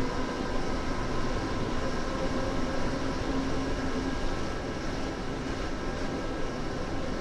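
A train rumbles steadily along the rails at speed.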